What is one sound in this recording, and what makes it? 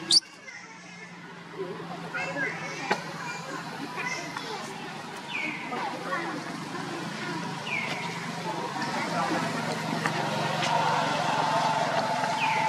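A baby monkey gives short high squeals.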